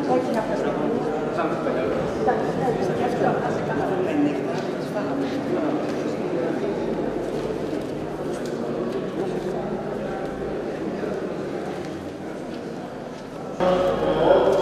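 A crowd of people murmurs quietly in a large echoing hall.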